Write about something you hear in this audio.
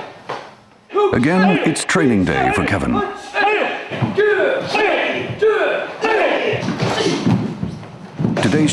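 Several men shout in unison during karate training.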